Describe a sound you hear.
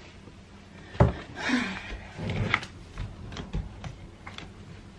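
Bare feet step and knock on wooden slats.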